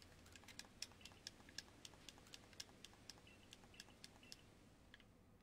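Short electronic blips tick rapidly as game dialogue text types out.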